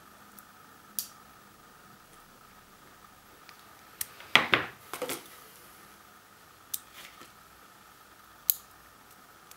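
Small pliers snip and click on thin wire.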